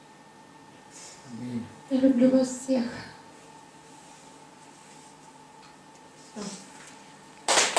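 A middle-aged woman speaks quietly into a microphone.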